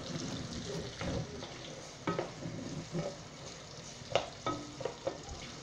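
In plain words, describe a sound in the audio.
A wooden spoon knocks and scrapes against a metal pot.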